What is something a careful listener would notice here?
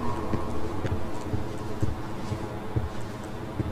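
Footsteps thud slowly on a stone floor.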